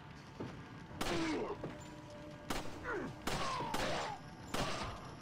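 A man groans and shouts angrily.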